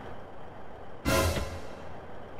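A bus door slams shut.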